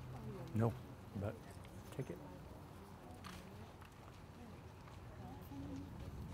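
A crowd of men and women murmurs and talks quietly outdoors.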